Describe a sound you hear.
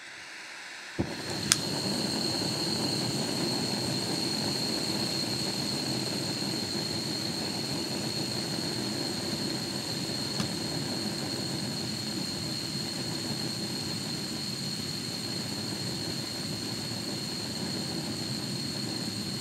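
A gas stove burner roars steadily.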